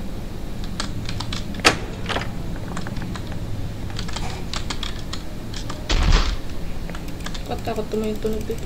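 A young woman speaks quietly into a close microphone.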